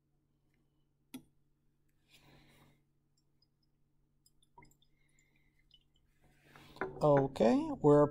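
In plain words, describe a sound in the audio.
Liquid swirls and sloshes softly inside a glass flask.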